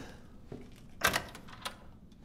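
A wooden door clicks and swings open.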